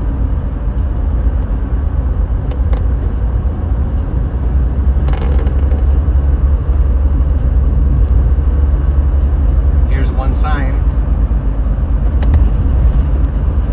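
Trucks roar past close by in the next lane.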